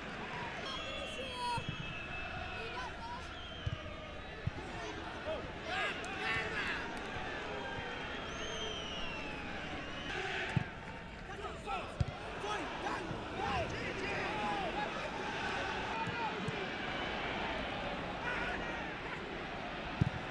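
A large stadium crowd roars and chants outdoors.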